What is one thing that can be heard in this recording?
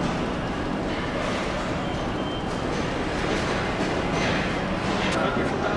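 Machinery hums steadily.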